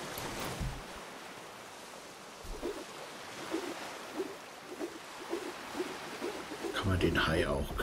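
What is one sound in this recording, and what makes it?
Ocean waves surge and splash.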